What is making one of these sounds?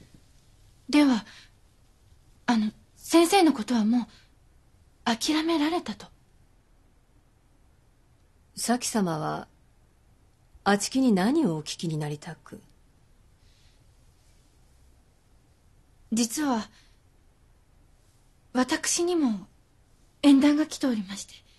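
A young woman speaks quietly and hesitantly.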